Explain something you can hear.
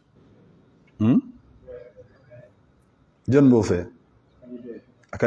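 A middle-aged man speaks calmly and emphatically into a microphone, with pauses.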